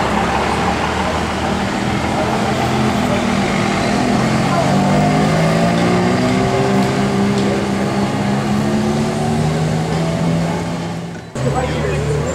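A Ferrari F430 V8 engine rumbles as the car pulls away.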